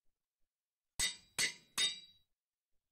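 A metal anvil clangs briefly.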